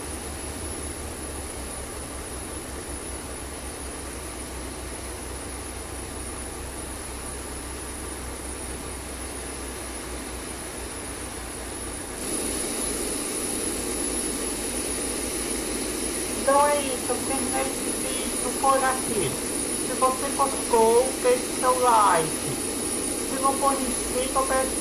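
Jet engines whine steadily at idle.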